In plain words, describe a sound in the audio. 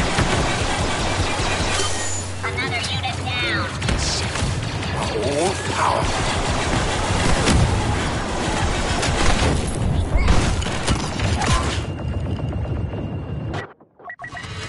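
Blaster shots fire rapidly in a loud battle.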